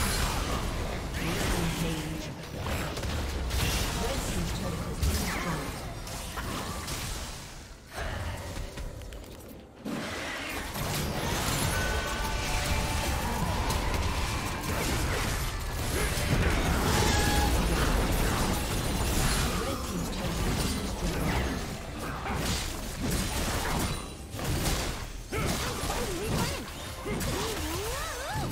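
Magic blasts and impacts crash and crackle in a fast video game battle.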